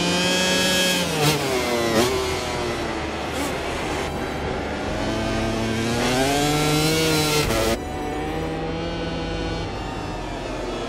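A motorcycle engine screams at high revs, its pitch rising and falling through gear shifts.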